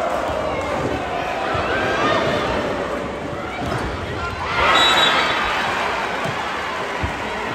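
A large crowd cheers and chants loudly in an echoing arena.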